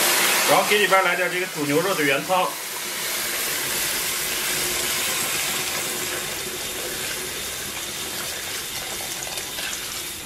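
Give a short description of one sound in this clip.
Liquid pours and splashes into a hot wok.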